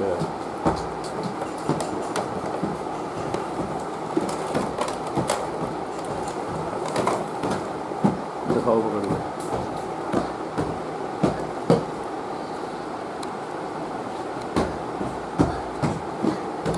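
Cardboard packaging rustles and scrapes as a toy is pulled out of a box.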